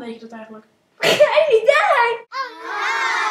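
A child shouts loudly and excitedly.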